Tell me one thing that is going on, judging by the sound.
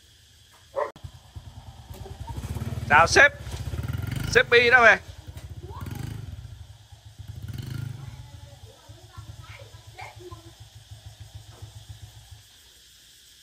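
A motorbike engine idles with a low, steady putter.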